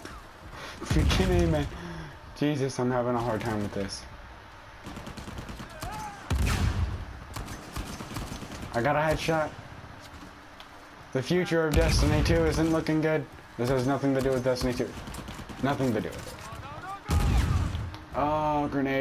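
A rifle fires sharp shots.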